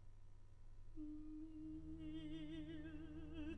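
A woman sings operatically with a wide vibrato, close by.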